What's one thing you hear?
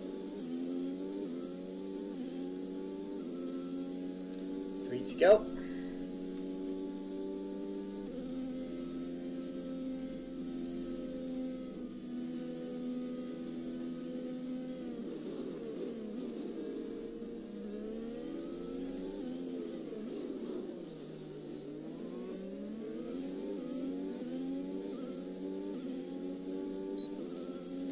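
A Formula One car's engine screams at high revs, shifting up through the gears.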